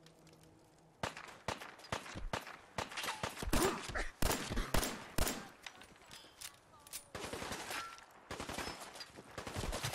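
A rifle fires in rapid, sharp shots.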